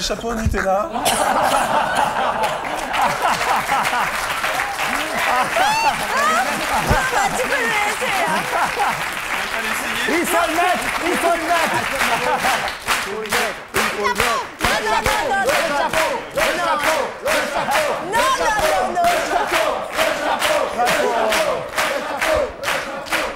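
A studio audience laughs and cheers loudly.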